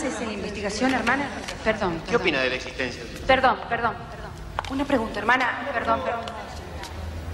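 Several adult reporters talk over one another with animation, close by.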